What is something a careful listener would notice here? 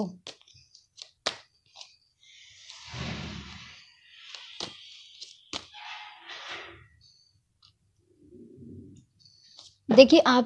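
Playing cards rustle and slide as they are shuffled.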